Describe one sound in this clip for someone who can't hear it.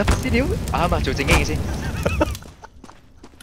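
Flames roar and crackle close by.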